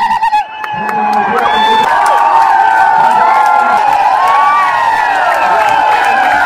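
A huge crowd shouts and cheers loudly outdoors.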